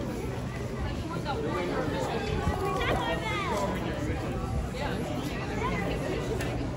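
A crowd of people chatters nearby on a busy street.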